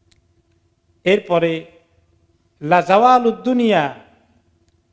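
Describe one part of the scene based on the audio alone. A middle-aged man chants slowly into a microphone.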